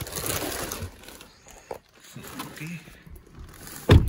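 A plastic bag rustles and crinkles up close.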